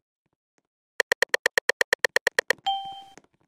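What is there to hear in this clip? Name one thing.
A rapid series of loud electronic beeps plays.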